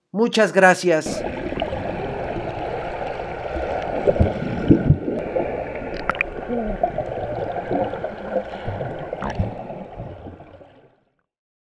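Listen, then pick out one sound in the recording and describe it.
Water rumbles and bubbles, muffled underwater.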